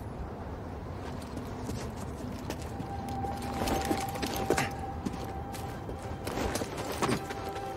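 Footsteps scuff quickly over rocky ground.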